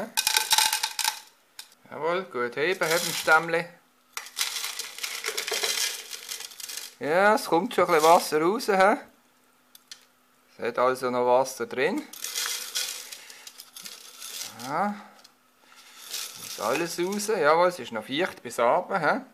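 Loose soil rustles and patters as a pot is shaken and tapped.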